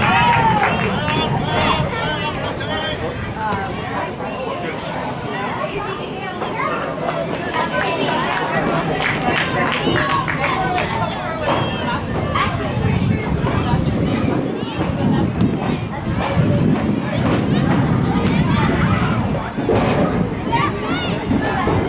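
Spectators and players shout and call out across an open field.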